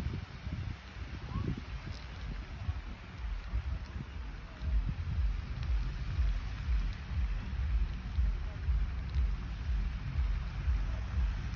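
Wind gusts and rumbles outdoors, louder in the second half.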